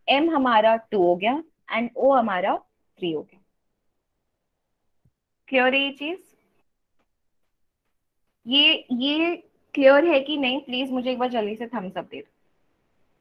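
A young woman speaks calmly into a microphone, heard as if through an online call.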